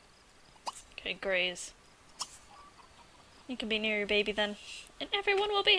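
A dog whines and whimpers in short, high cries.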